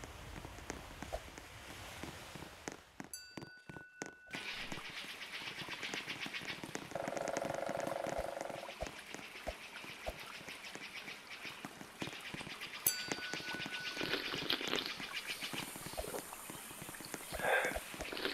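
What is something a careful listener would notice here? Light, upbeat game music plays with a quick beat.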